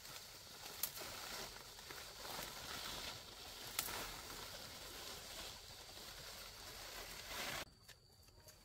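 Leaves rustle as branches are pushed aside close by.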